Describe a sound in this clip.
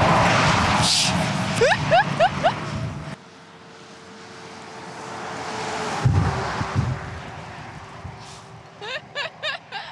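A truck rumbles past on a road.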